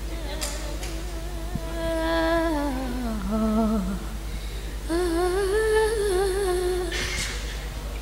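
A young woman sings into a microphone, heard through a loudspeaker.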